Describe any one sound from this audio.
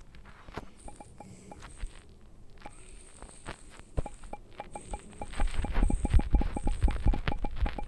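Soft taps sound as a phone keyboard is typed on.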